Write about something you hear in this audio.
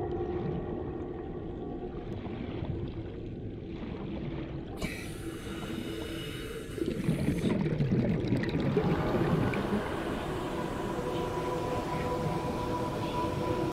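A vehicle's engine hums low and steadily underwater.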